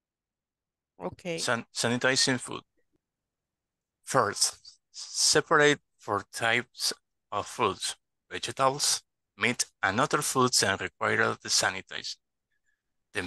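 A young man reads aloud in a steady voice through an online call.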